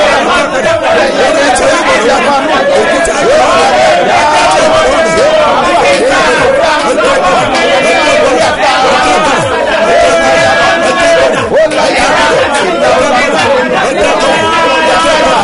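A woman sings along through a microphone.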